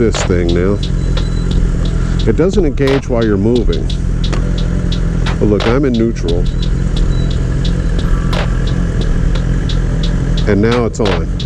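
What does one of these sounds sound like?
A motorcycle engine revs up and down in short bursts.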